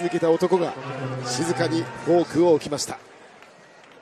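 A large crowd chants loudly in an echoing hall.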